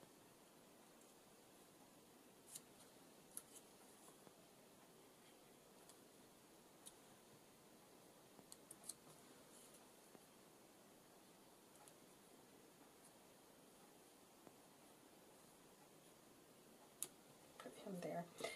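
Paper rustles and taps softly as hands press small pieces onto a card.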